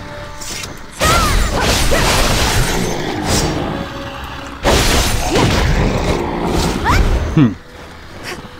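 Weapons swing with loud whooshing, crashing blasts.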